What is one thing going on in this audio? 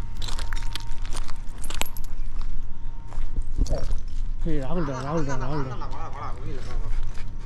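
Footsteps crunch on gravel and debris.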